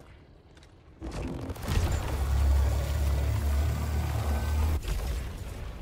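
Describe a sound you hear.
A heavy weapon fires with a deep, roaring blast.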